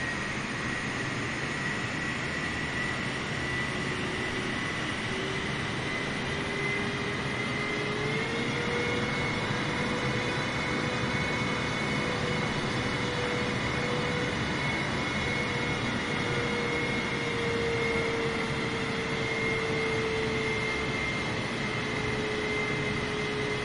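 A jet airliner's engines whine and roar steadily as it taxis.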